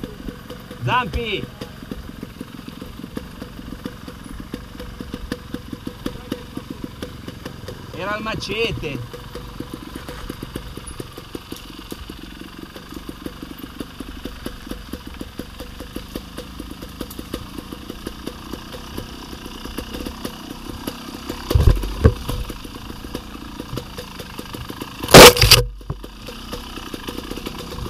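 A bicycle rattles and clatters over a bumpy dirt trail.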